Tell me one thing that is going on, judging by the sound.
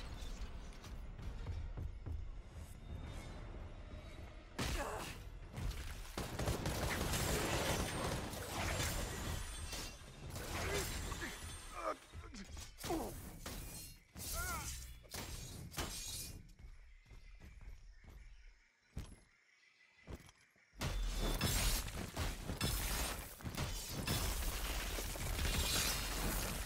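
Video game combat sounds clash and thud.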